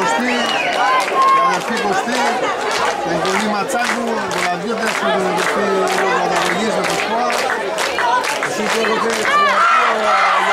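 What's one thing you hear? Spectators clap their hands.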